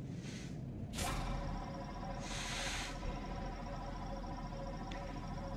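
A laser beam fires with a sudden whoosh and then hums steadily.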